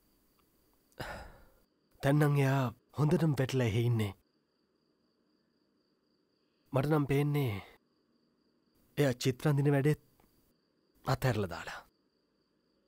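A young man speaks calmly and close by, pausing between phrases.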